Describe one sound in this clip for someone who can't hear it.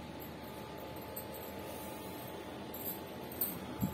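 Cloth rustles as hands unfold it.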